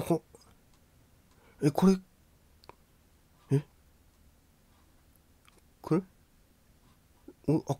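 A middle-aged man speaks in short, puzzled bursts close to a microphone, with pauses between.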